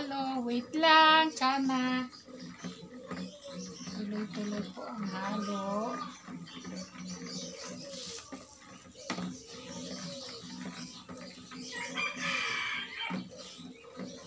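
A pole stirs liquid in a plastic bucket.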